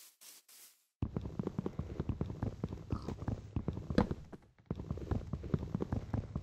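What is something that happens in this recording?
Blows knock rapidly against a block of wood.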